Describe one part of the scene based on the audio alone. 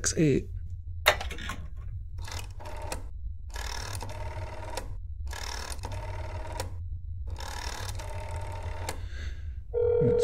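A rotary telephone dial whirs and clicks as it turns back.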